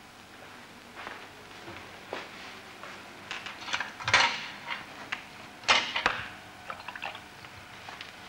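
A paintbrush dabs and scrapes against a canvas.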